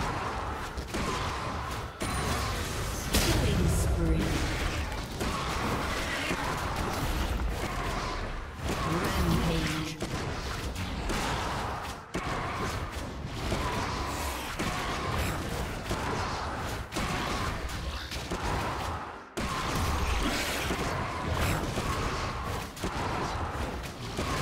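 Game combat effects crackle and clash in quick bursts.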